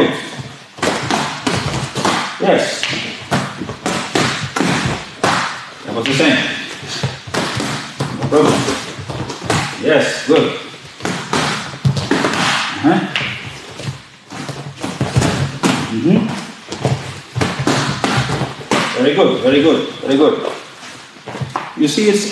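Gloved punches and kicks smack sharply against pads.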